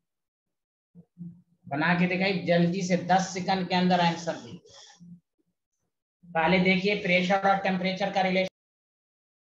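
A man speaks close to a microphone, explaining as in a lecture.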